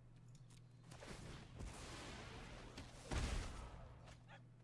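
A digital card-game sound effect whooshes.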